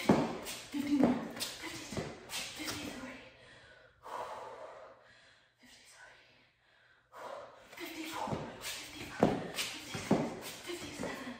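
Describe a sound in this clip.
Sneakers thump and scuff rhythmically on a mat.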